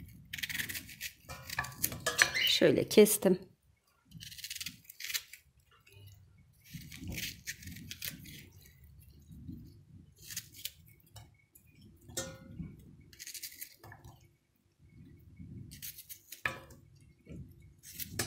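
A knife cuts through an onion with soft crunches.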